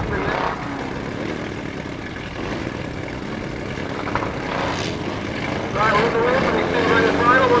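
Racing car engines roar and rev around a track in the distance.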